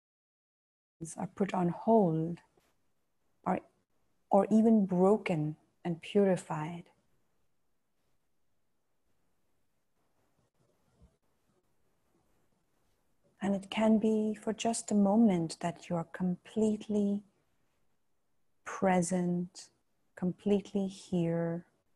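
A woman speaks slowly and calmly into a close microphone, with long pauses.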